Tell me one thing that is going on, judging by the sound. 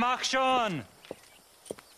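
A man speaks gruffly and close by.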